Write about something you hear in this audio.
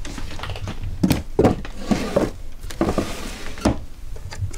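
A drawer slides shut with a thud.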